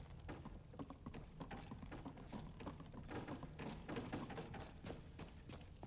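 Footsteps thud on stone steps.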